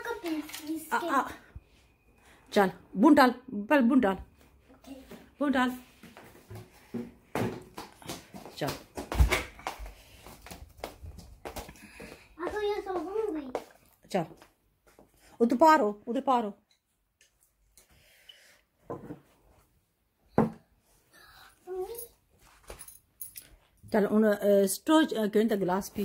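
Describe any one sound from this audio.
A young girl talks nearby with animation.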